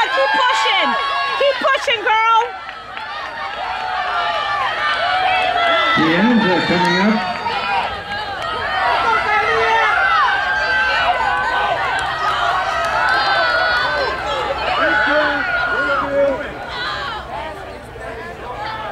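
A crowd of young spectators cheers and shouts outdoors.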